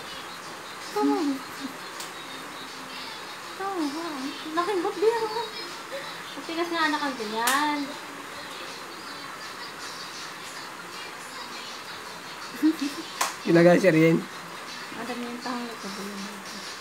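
Young children chatter and squeal playfully nearby.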